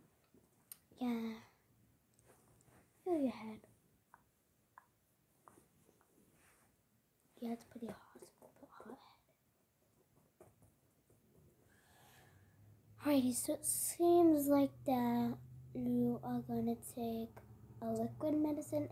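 A young girl talks close up, quietly at first and then with animation.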